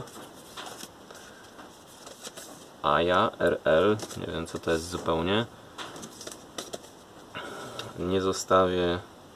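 Paper record sleeves rustle and slide against one another as they are handled.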